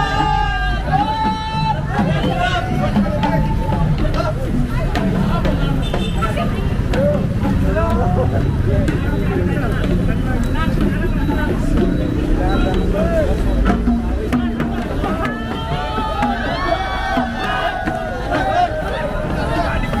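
Drums beat as dancers parade past.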